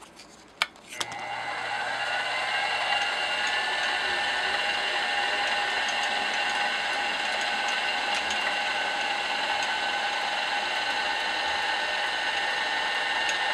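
A milling machine motor starts and whines steadily.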